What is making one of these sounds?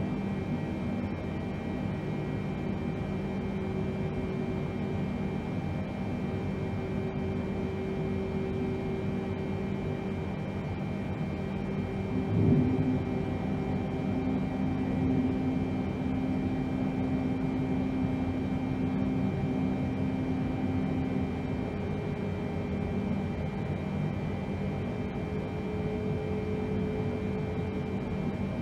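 Jet engines hum steadily inside a cockpit.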